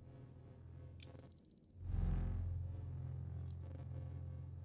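Game menu sounds blip briefly as the selection changes.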